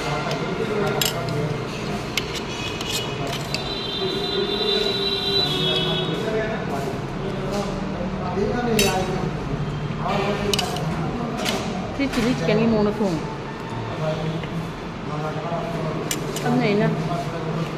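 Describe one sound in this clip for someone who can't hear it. A spoon clinks against a plate.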